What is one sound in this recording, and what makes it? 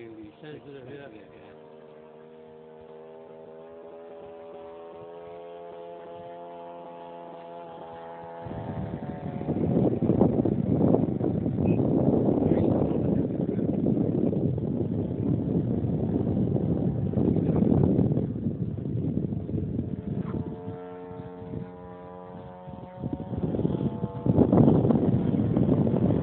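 A small plane's engine drones overhead.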